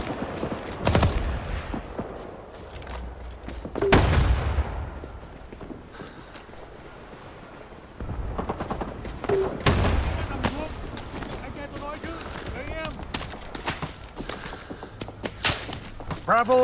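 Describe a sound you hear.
A rifle fires loud single shots, each one echoing briefly.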